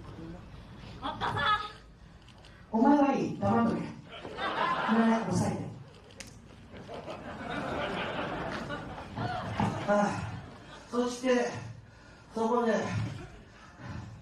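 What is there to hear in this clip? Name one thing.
A woman speaks loudly and with animation through a microphone and loudspeakers, in a large echoing hall.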